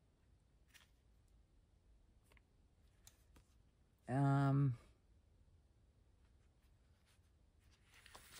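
Paper rustles softly under handling.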